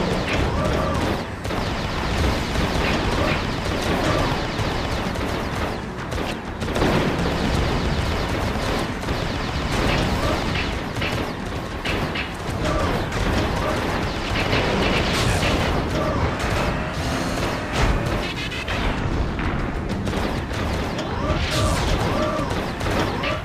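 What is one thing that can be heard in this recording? A robot fires energy blasts in rapid bursts.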